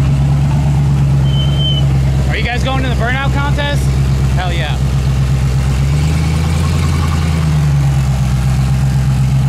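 A large engine idles with a steady, deep rumble.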